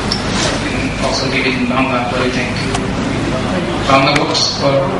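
A young man speaks calmly through a microphone and loudspeakers in a large echoing hall.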